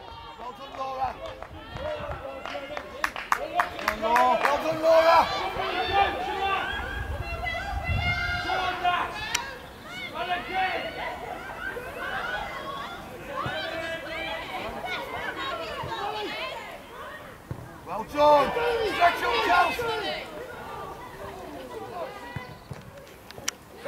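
Young girls shout and call out to each other across an open field.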